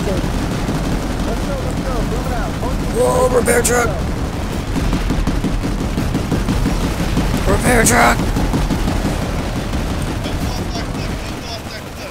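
Cannons fire with loud booms.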